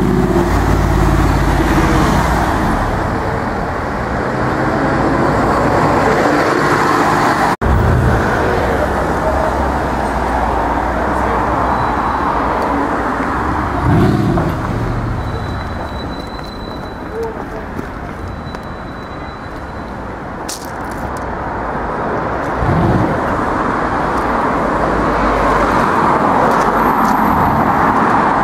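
Street traffic rumbles past steadily outdoors.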